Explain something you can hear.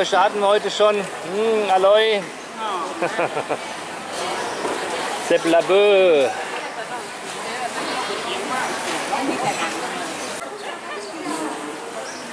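Women and men chatter in the background of a large echoing hall.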